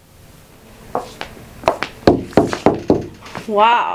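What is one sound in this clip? Footsteps knock on a hard floor nearby.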